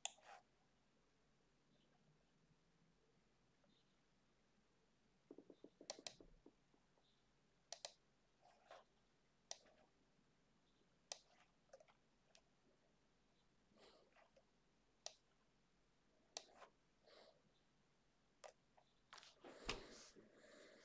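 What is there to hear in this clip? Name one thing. A computer mouse clicks now and then, close by.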